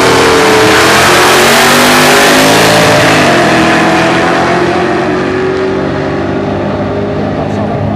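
Two race car engines roar loudly past and fade into the distance.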